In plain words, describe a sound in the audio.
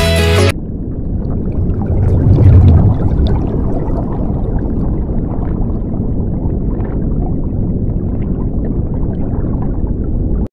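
Bubbles gurgle and burble underwater in a low, steady rush.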